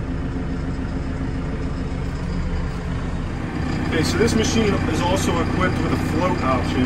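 A diesel engine idles with a low steady rumble.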